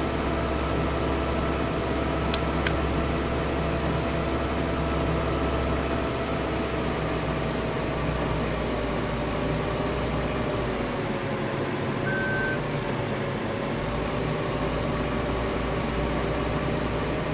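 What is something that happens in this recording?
A combine harvester engine hums and drones steadily.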